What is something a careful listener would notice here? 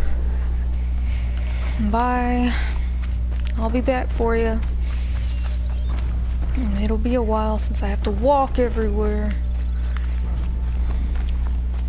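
Footsteps run quickly over dry dirt and grass.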